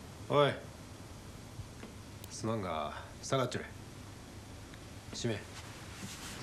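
A man speaks calmly in short phrases, close by.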